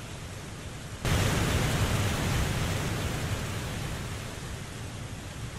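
Water splashes loudly and then rushes, slowly fading.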